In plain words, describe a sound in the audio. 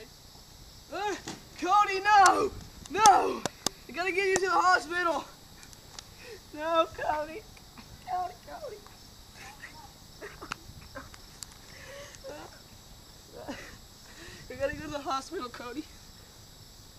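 Young boys shout and laugh loudly nearby.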